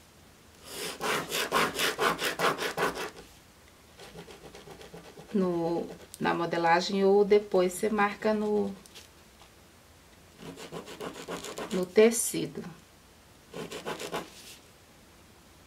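A marker pen scratches across paper in quick strokes.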